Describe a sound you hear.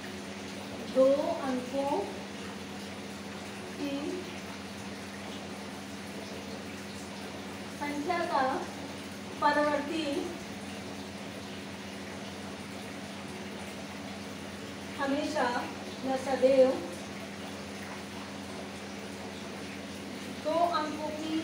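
A woman speaks calmly in short phrases nearby.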